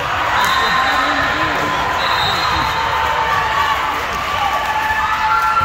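Young women chatter and call out in a large echoing hall.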